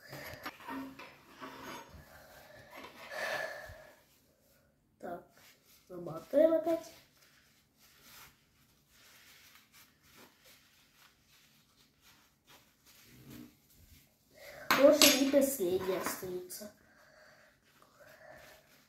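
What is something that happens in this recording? Paper napkins rustle and crinkle as they are folded.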